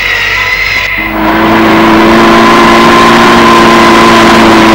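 A car engine hums as a car drives slowly past.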